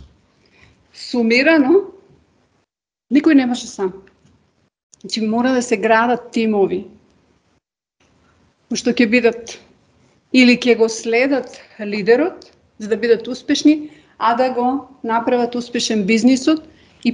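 A woman speaks steadily through an online call, with short pauses.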